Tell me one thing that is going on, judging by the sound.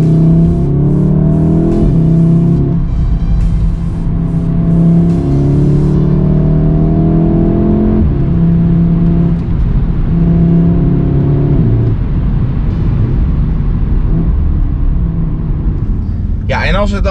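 A car engine revs hard, rising in pitch and dropping at each gear change.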